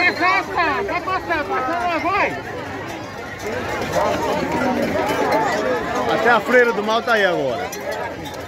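Voices in a crowd whoop and cheer loudly in high, sliding cries.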